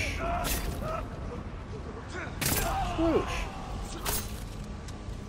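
A katana slashes.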